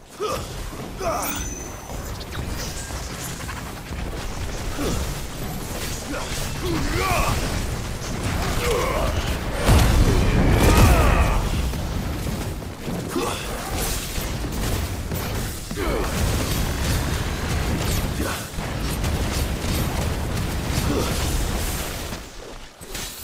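Fiery blasts roar and crackle in quick bursts.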